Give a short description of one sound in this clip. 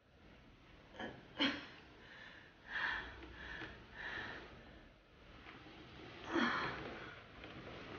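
A young woman groans and mumbles close by.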